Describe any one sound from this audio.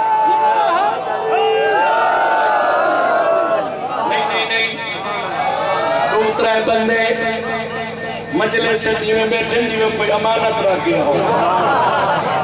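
A young man chants loudly in a singing voice through a microphone and loudspeakers.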